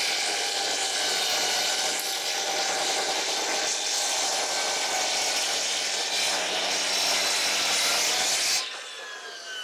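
A circular saw whines loudly as it cuts through wood.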